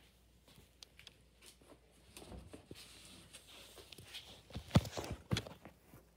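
Objects rustle and knock together close by.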